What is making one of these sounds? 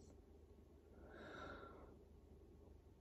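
A woman breathes in deeply and sighs out loudly, close by.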